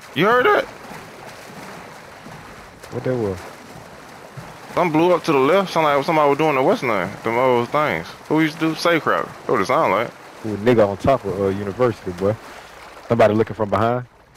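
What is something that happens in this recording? Water sloshes and splashes as a swimmer moves through it.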